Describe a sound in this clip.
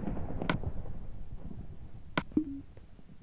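A soft menu click sounds as a selection is made.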